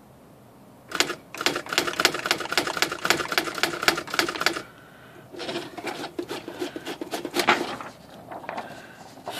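An electric typewriter rapidly strikes letters in quick bursts of clicks.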